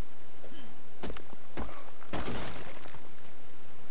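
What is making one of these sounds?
An axe strikes rock with a few sharp knocks.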